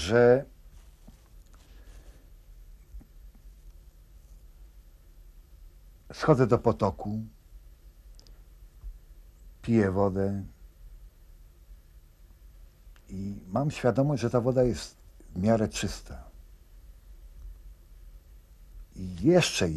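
An elderly man speaks in short, calm phrases close by, with pauses between.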